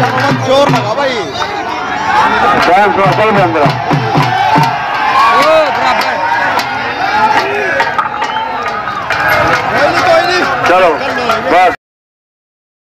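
A hand drum beats in a quick rhythm.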